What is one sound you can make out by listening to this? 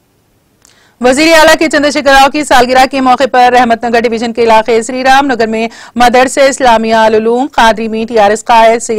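A woman reads out the news clearly through a microphone.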